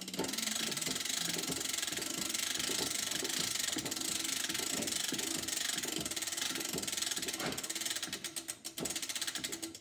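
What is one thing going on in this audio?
A phonograph's crank is wound with soft ratcheting clicks.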